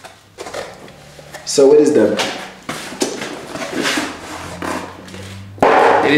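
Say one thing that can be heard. Cardboard rustles and flaps as a box is opened.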